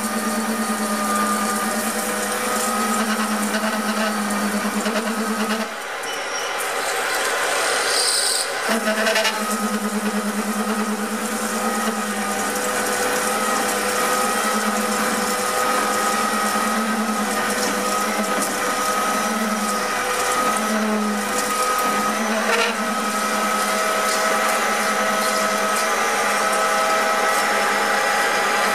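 A lathe motor hums steadily as the spindle spins.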